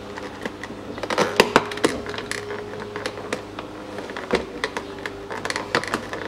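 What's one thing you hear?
A plastic tool clicks and scrapes against a car door panel.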